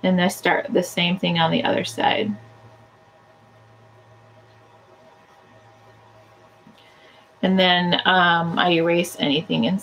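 A woman talks calmly and clearly into a close microphone.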